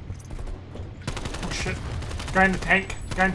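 Rapid gunshots crackle from a video game.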